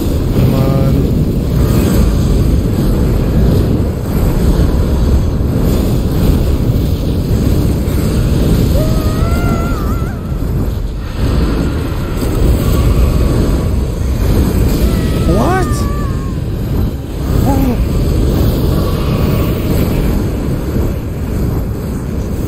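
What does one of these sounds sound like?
Loud rumbling and crashing battle noises roar throughout.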